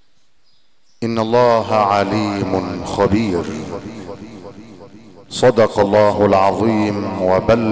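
A man chants loudly in a long, melodic voice through a microphone and loudspeakers, echoing in a large hall.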